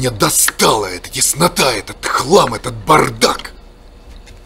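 A man speaks loudly and with agitation, close by.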